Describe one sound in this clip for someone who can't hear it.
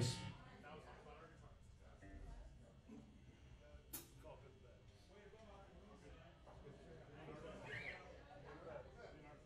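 A live band plays rock music.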